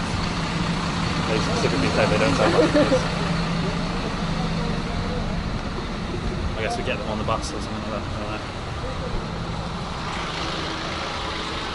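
A bus engine idles with a low steady hum.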